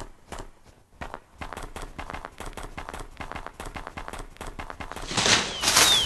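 A wolf's paws crunch steadily on snow.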